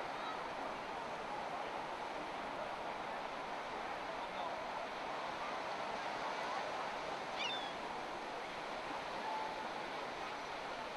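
Small waves break and wash onto a beach.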